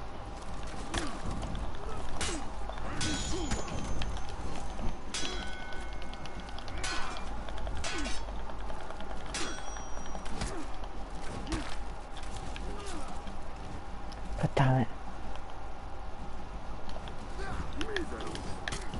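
Swords clash and clang in quick, sharp strikes.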